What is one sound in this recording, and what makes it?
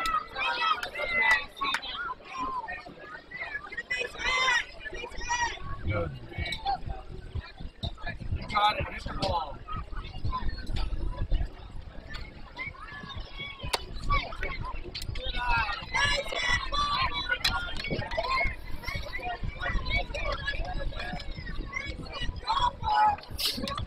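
Young players and spectators shout and call out across an open field.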